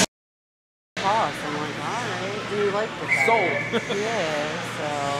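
Players shout across a large echoing rink.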